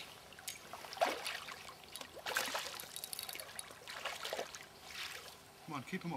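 An animal splashes as it swims through the water.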